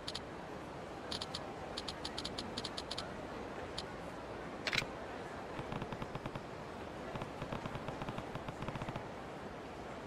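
Rapid electronic blips tick in quick bursts.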